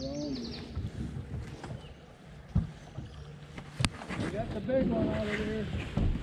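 A fishing reel clicks as its handle is cranked.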